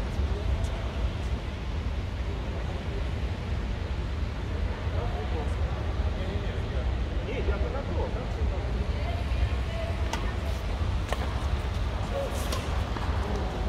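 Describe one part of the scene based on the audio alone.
Badminton rackets strike a shuttlecock with sharp pops.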